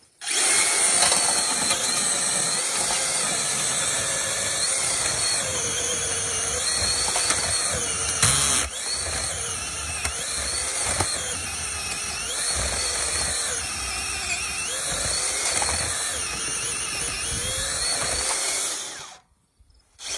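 An electric auger whirs loudly as it bores into soil.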